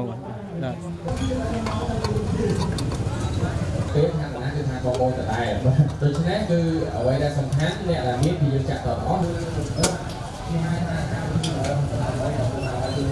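Motorbike engines idle nearby.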